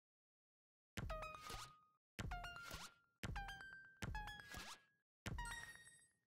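Bright, sparkling game chimes ring out in quick bursts as cards are played.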